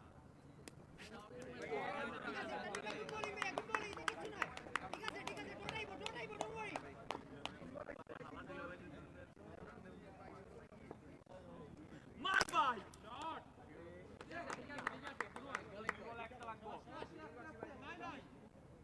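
Hockey sticks clack against a ball on a hard surface.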